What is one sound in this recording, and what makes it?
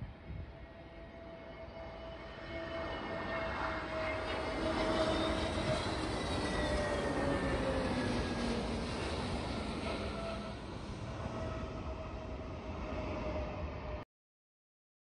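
A jet airliner roars loudly as it takes off and climbs away.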